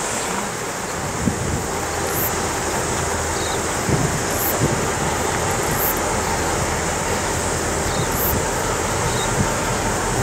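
A diesel train rumbles closer, growing louder as it nears.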